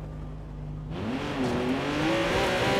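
A car engine revs up loudly.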